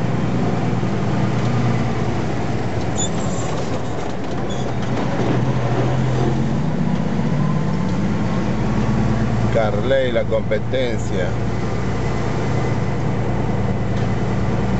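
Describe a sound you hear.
Tyres roar on the road as trucks pass.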